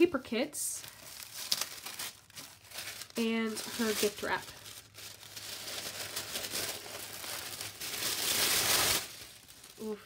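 A plastic sleeve crinkles and rustles up close.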